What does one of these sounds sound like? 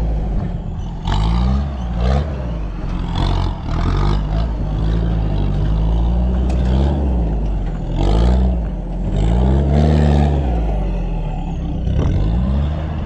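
A four-wheel-drive engine revs up and down loudly, close by.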